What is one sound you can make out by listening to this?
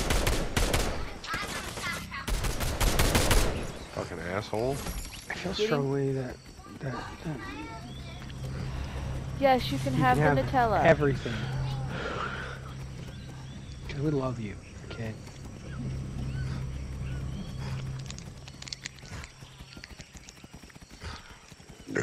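A large animal's hooves thud steadily as it runs over grass.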